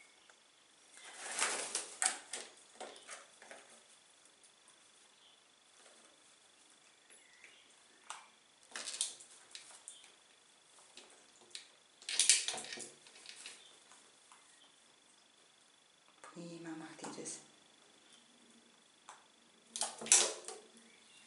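Young crows caw and squawk loudly close by.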